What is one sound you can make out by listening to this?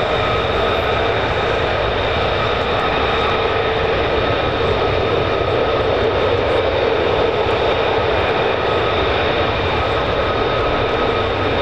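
Jet engines roar loudly and steadily with a high whine close by.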